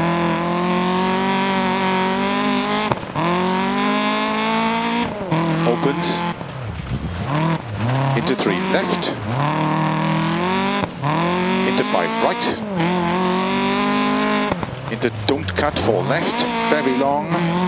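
Gravel sprays and crunches under sliding tyres.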